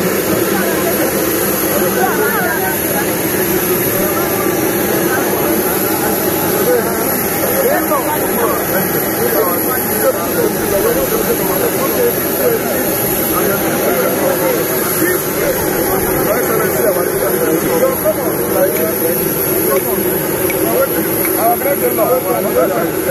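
A crowd of men and women chatter loudly close by, outdoors.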